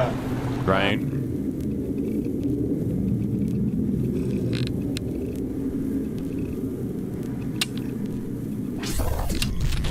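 A young man talks calmly close to a microphone.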